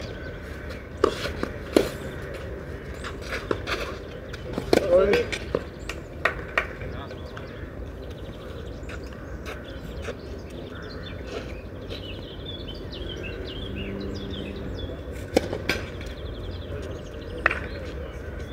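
A tennis ball is struck with sharp pops by a racket.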